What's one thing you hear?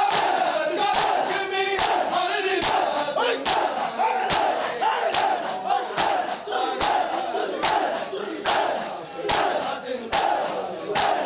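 Many men beat their chests in a steady rhythm of loud slaps.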